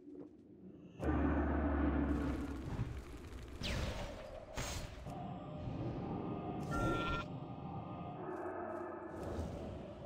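Magic spells crackle and strike in a fight.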